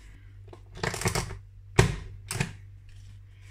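A paper punch snaps down with sharp clicks.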